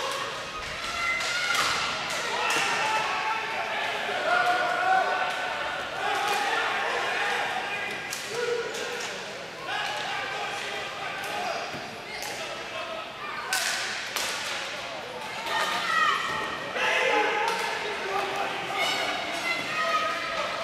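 Spectators chatter and call out in a large echoing arena.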